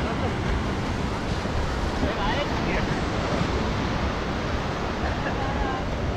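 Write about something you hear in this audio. Wind blows across the microphone outdoors.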